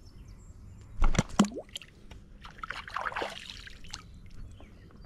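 A small fish splashes into shallow water.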